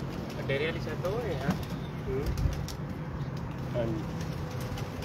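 Small birds chirp and whistle nearby.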